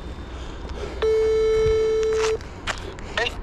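A phone gives a steady electronic beep.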